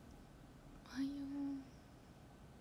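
A young woman makes a short hum close by.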